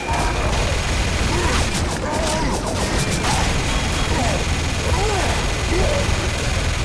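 A heavy gun fires rapidly and continuously.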